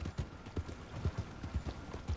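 A horse-drawn wagon rattles nearby.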